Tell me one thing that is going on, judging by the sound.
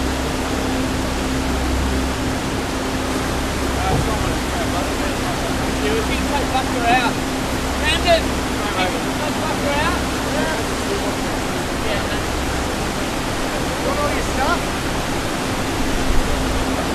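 A stream rushes steadily over rocks.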